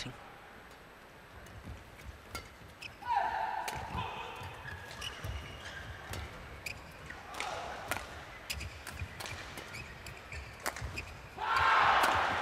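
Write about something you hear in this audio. A shuttlecock is struck sharply by rackets, back and forth.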